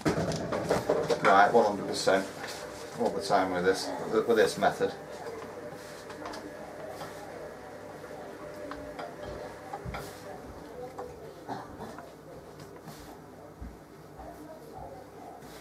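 Hands knead and pat soft dough on a hard counter with quiet thumps.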